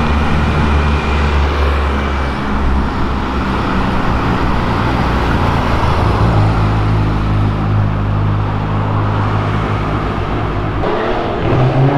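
An old car engine rumbles low as the car drives past.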